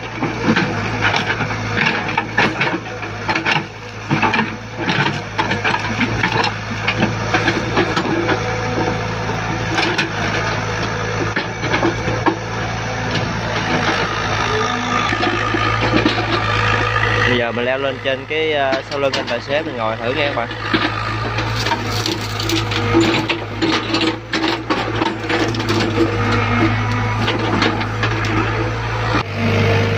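An excavator's diesel engine rumbles steadily close by.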